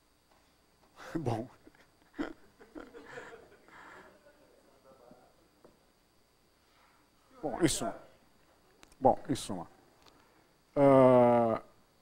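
An elderly man speaks in short bursts in an echoing hall.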